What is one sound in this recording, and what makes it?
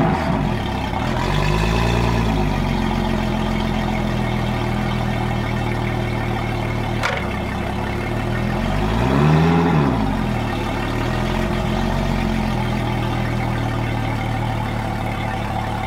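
Water splashes and churns from a motor's propeller.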